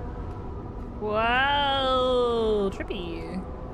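A young woman makes a long drawn-out vocal sound close to a microphone.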